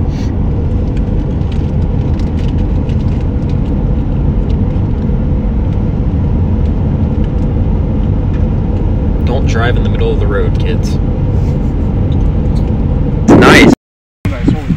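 A car drives along a road with a steady low rumble of wind and tyres.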